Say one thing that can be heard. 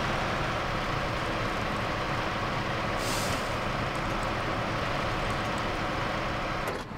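Truck tyres crunch over loose rocks.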